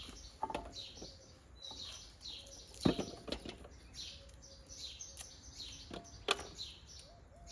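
Cucumbers bump and rustle as they are handled.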